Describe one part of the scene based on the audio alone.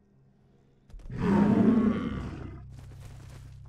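A large creature lets out a long, deep bellowing roar.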